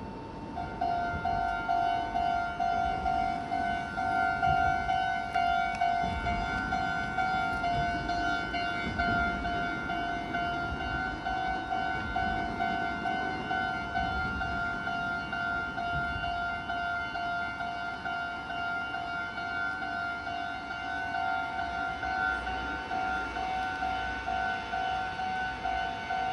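A railway crossing bell clangs rapidly and steadily, close by.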